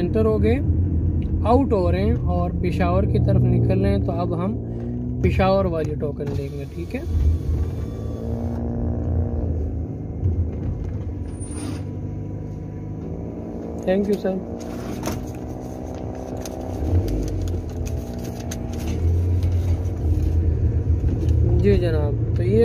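A car engine hums low and steady while driving slowly.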